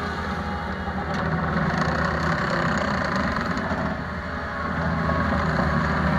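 Metal tracks clank and squeak as a small loader rolls along.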